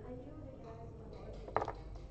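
Game pieces click against each other as a hand moves them.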